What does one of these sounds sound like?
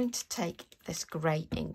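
A spray bottle hisses as it mists water.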